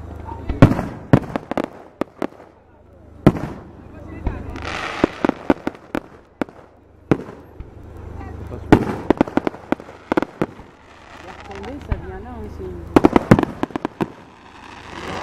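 Fireworks crackle and fizzle as they burn out.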